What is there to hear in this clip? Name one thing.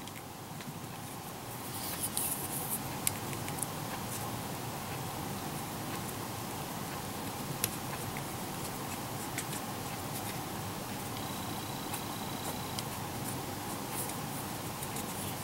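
Small plastic parts click and snap together.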